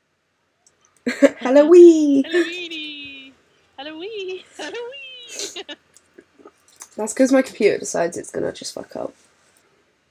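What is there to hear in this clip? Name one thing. A young woman laughs and talks with animation over an online call.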